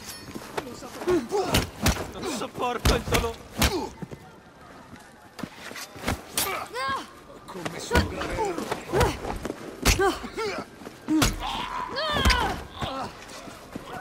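Men grunt and groan as they are struck.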